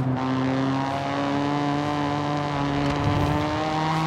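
Tyres squeal on the road as a car drifts through a bend.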